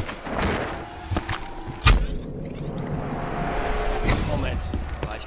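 A portal whooshes and roars open.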